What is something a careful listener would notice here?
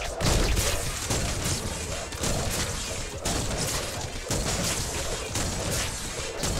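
Blasts boom and crackle as shots hit.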